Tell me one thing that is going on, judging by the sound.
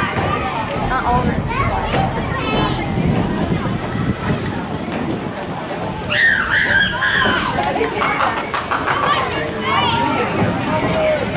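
Spectators call out and cheer from a distance outdoors.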